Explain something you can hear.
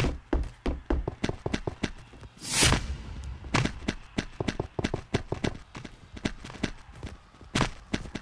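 Blocks are placed one after another with quick soft thuds.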